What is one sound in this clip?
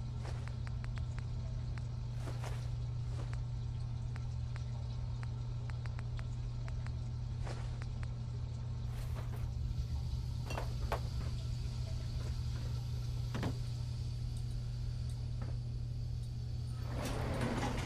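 A low steady hum drones throughout.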